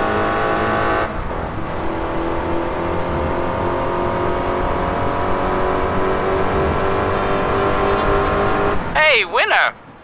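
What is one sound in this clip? A car engine roars at high revs with a steady high whine.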